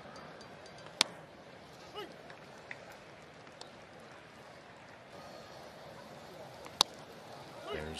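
A baseball pops sharply into a catcher's mitt.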